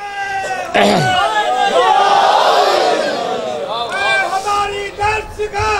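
A crowd of men shouts together in response.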